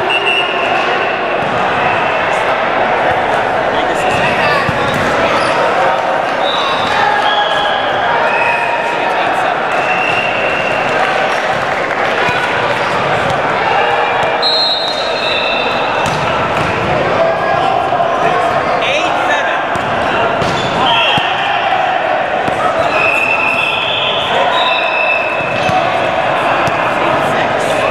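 A volleyball is struck with a hand, thudding.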